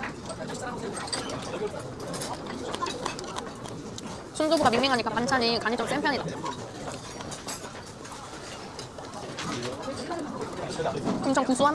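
Metal utensils clink against dishes.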